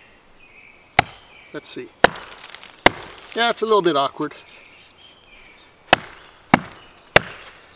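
A wooden baton knocks sharply on the back of a knife blade.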